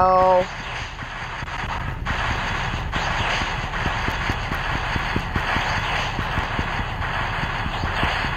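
Video game battle effects whoosh and crash steadily.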